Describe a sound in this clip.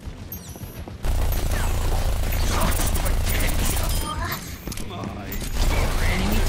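A game gun fires rapid bursts of shots.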